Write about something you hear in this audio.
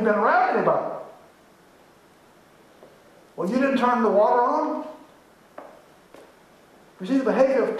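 A man speaks through a microphone in an echoing room.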